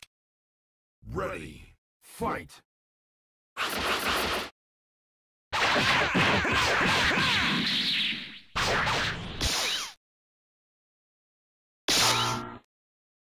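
Game sound effects of blows and energy blasts whoosh and clash in short bursts.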